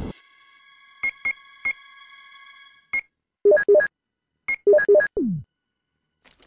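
Short electronic beeps and blips sound one after another.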